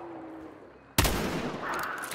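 A rifle shot cracks sharply.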